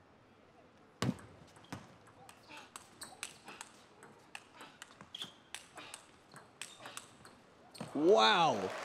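A table tennis ball clicks quickly back and forth off paddles and the table.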